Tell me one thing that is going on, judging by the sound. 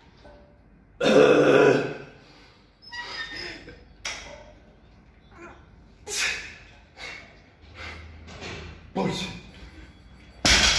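A man breathes hard and grunts with effort close by.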